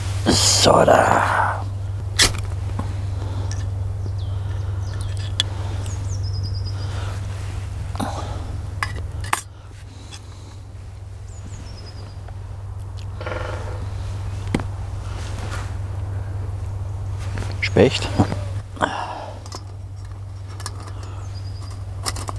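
A knife cuts on a wooden board.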